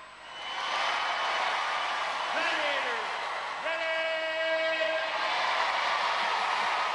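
A large crowd cheers loudly in a big echoing arena.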